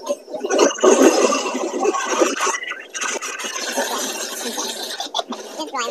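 A young man laughs into a computer microphone.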